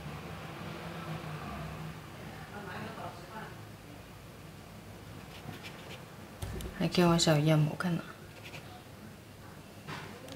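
A paintbrush dabs and brushes softly on paper.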